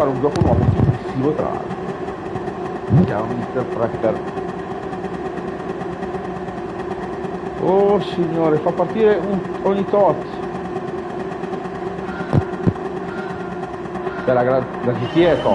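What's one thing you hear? A car engine idles steadily with a low hum.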